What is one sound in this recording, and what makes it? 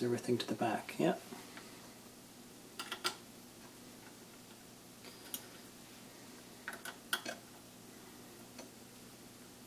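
Small metal parts click and tap as hands fit them together.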